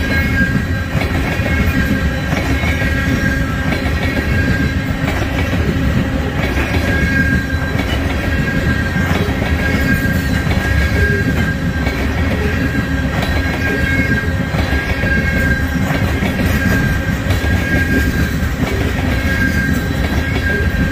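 A freight train rumbles steadily past close by.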